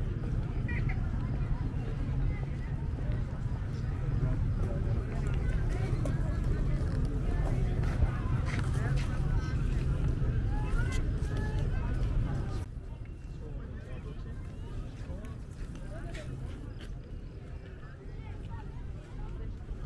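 Many people chatter and call out in the distance outdoors.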